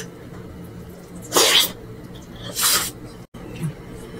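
A woman chews food close to a microphone with wet, smacking sounds.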